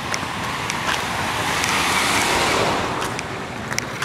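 A car drives past close by and fades away.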